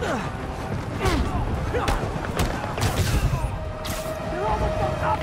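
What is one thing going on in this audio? Web lines shoot and whoosh as a character swings through the air.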